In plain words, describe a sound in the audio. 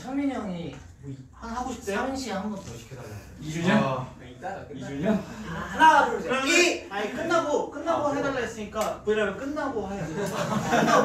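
Young men laugh loudly.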